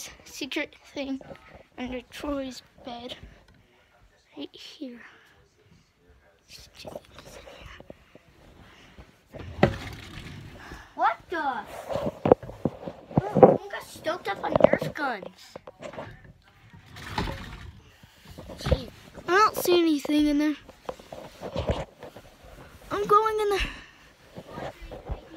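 A young boy talks with animation close to the microphone.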